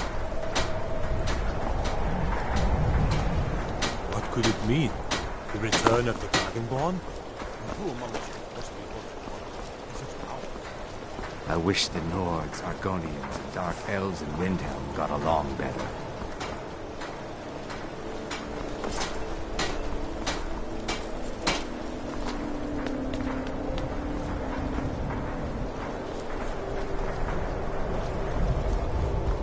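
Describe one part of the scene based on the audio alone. Footsteps crunch steadily on stone and snow.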